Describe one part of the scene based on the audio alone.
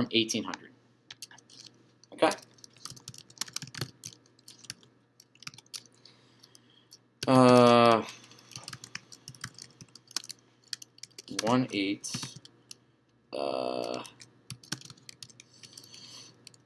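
Keys click on a computer keyboard.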